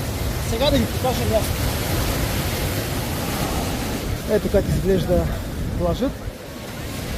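A man speaks calmly and close up.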